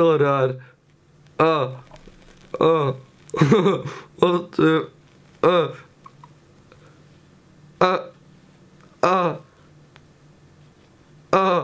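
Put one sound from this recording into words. A young man close by lets out short, loud laughing cries, again and again.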